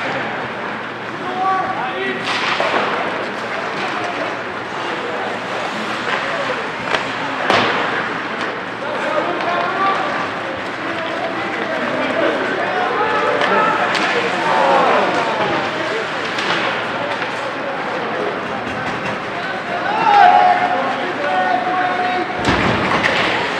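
Spectators chatter and call out in an echoing rink.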